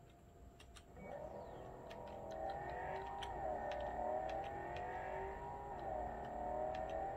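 A car engine hums steadily and rises and falls in pitch as the car drives.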